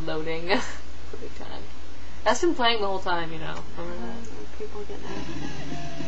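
A second young woman talks calmly close to a webcam microphone.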